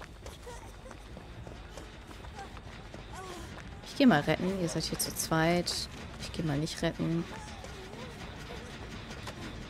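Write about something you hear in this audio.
Footsteps rustle through dry grass at a run.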